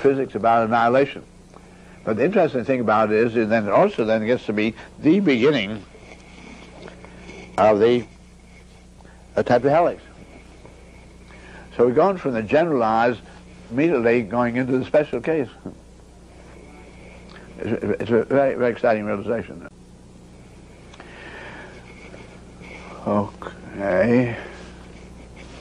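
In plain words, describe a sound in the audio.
An elderly man speaks calmly and deliberately, close to a microphone, with long pauses.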